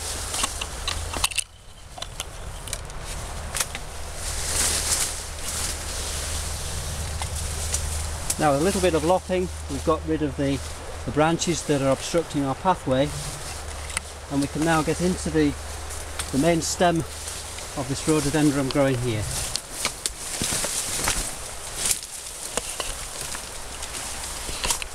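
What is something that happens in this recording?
Leaves and branches rustle as someone pushes through brush.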